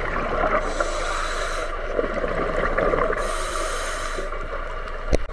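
Scuba divers breathe out, and bubbles gurgle and rush underwater.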